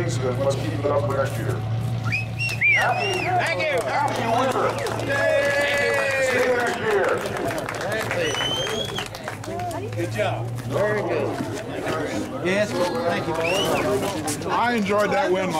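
Several men talk and laugh together outdoors.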